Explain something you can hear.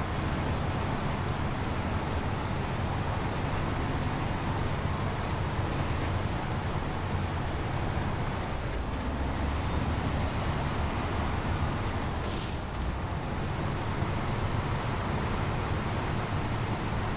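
A truck engine rumbles and growls steadily.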